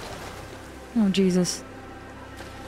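A young woman speaks briefly into a nearby microphone.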